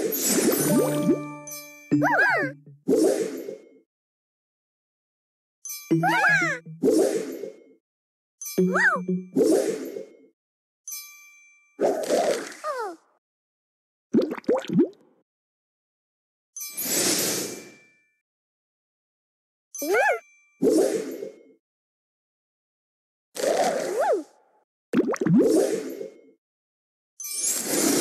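Cheerful game chimes and pops ring out as pieces match and burst, in short bursts with silent gaps.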